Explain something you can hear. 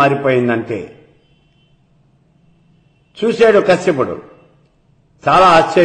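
An elderly man speaks calmly and closely into a microphone, in short phrases with pauses.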